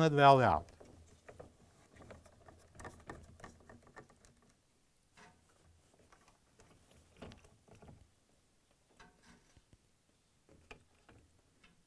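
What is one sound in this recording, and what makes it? Plastic parts knock and click softly.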